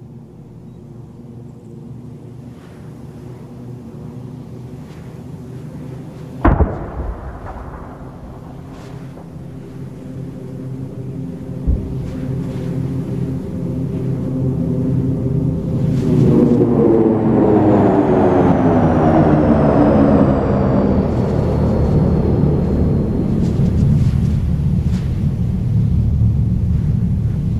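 A jet engine roars overhead, growing louder as the plane passes close.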